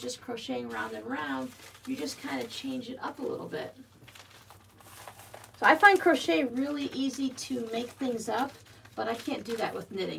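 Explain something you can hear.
Paper rustles as a magazine slides into a plastic mailing envelope.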